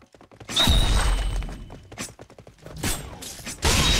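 A blade slashes with quick swishes.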